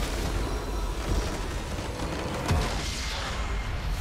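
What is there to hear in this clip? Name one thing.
A large structure explodes with a deep rumbling boom.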